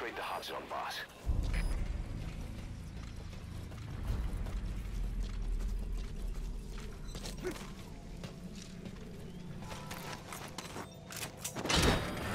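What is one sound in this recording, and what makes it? Footsteps run over dirt and hard ground.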